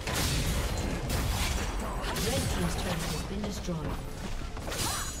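Spells and weapons clash and burst in a fast game battle.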